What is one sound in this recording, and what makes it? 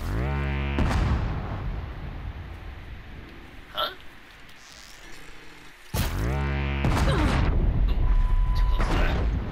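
An explosion bursts with a loud, crackling roar.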